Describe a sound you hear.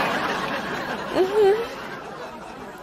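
A young woman murmurs in agreement.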